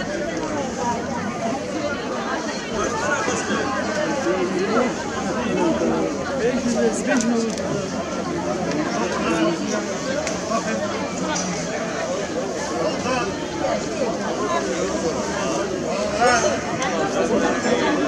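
A crowd of men and women chatter all around outdoors.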